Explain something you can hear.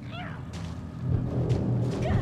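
A creature growls and snarls nearby.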